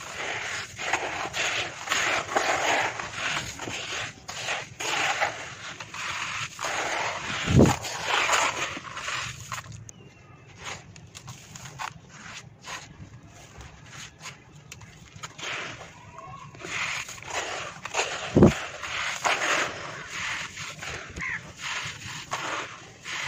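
Hands dig and scoop through loose, crumbly soil with a soft rustling crunch.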